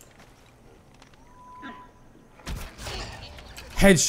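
A bow string twangs as an arrow is shot.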